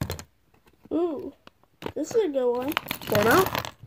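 A plastic wrapper crinkles as hands handle it.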